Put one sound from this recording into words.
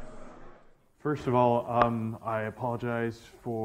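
A young man speaks calmly through a microphone in a large room.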